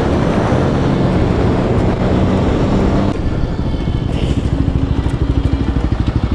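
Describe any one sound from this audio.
A motorcycle engine hums steadily at speed, then putters at a slow, rhythmic idle.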